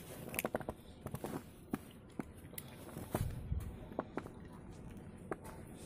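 A dog's paws pad softly on snow.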